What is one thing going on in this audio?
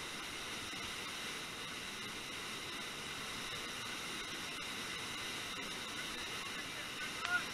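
Whitewater rushes and roars steadily close by.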